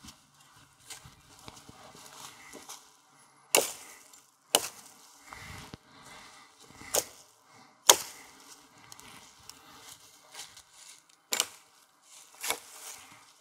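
Dry leaves and twigs rustle underfoot.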